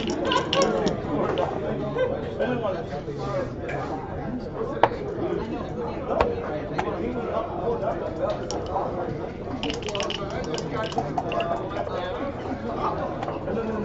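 Dice rattle and tumble across a board.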